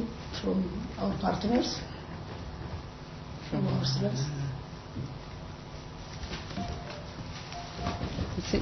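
A man speaks calmly through a microphone in a room.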